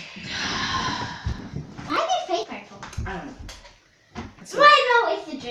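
Footsteps thump on a wooden floor.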